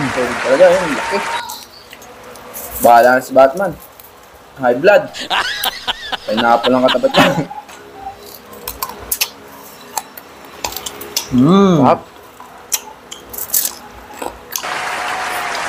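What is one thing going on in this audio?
Crispy food crunches as it is broken apart by hand.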